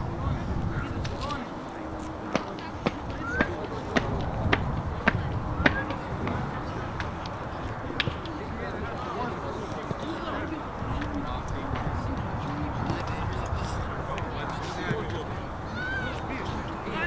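Football players shout to each other far off.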